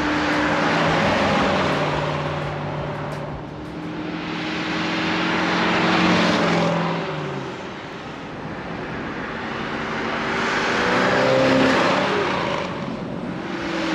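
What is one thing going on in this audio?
A muscle car's engine rumbles loudly as the car drives past close by.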